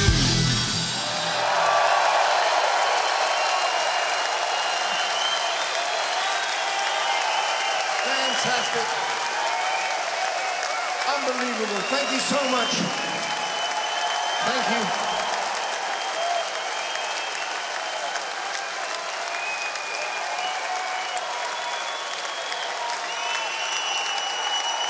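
A large crowd claps loudly.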